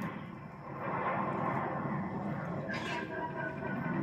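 An explosion booms from a video game through a loudspeaker.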